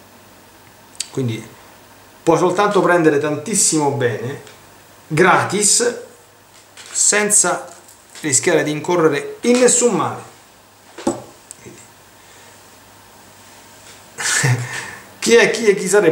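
A middle-aged man talks calmly into a microphone, close by, in short phrases with pauses.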